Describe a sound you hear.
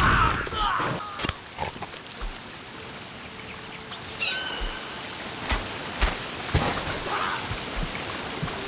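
A creature chomps with crunching bites.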